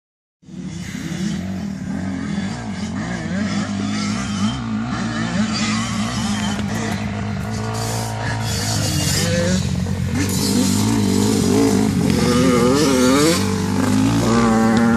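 A quad bike engine idles steadily close by.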